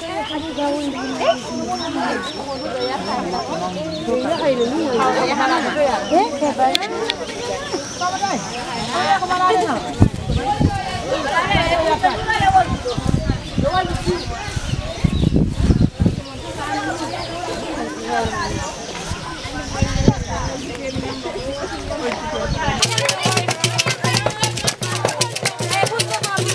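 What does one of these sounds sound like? A crowd of women sings and chants together outdoors.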